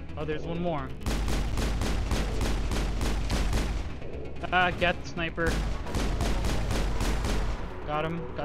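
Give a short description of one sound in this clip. A heavy gun fires in rapid bursts of loud shots.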